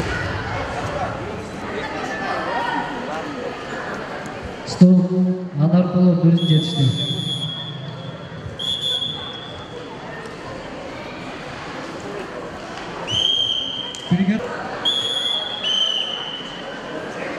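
A crowd murmurs and chatters in an echoing hall.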